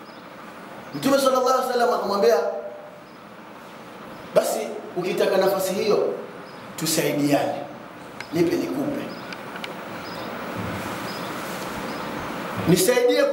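A man preaches loudly and passionately into a microphone, in bursts with pauses, in a reverberant room.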